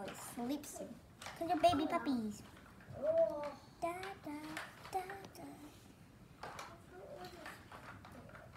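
A child talks with animation close by.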